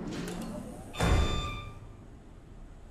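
A heavy machine clanks and whirs into motion.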